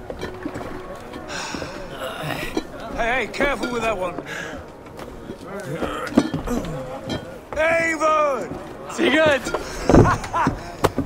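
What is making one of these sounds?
A man calls out loudly and cheerfully, close by.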